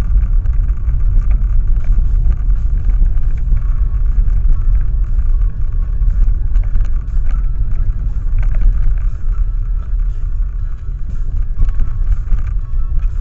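Tyres rumble and rattle over a rough, bumpy road.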